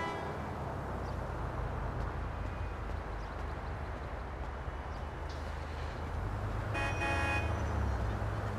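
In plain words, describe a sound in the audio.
A car engine rumbles low and steady nearby.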